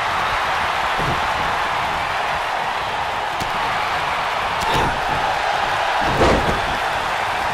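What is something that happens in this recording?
Heavy thuds sound as bodies slam onto the wrestling ring.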